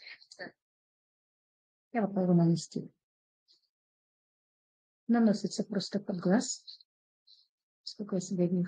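An elderly woman talks calmly, close by.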